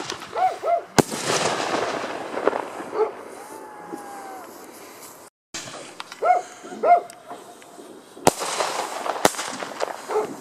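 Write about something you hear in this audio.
Fireworks crackle and fizz as sparks burst.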